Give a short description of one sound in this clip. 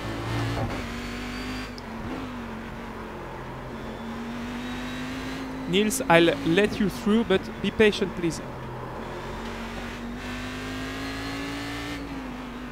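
A race car engine drones steadily from inside the cabin.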